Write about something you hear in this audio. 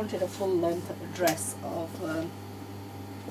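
A woman speaks briefly nearby.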